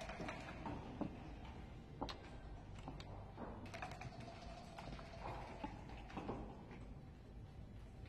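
Dice rattle inside a cup.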